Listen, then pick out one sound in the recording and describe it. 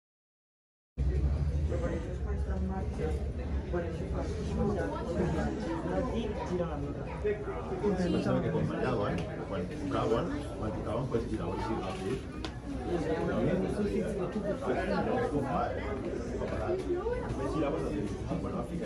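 A crowd of women and children chatters nearby indoors.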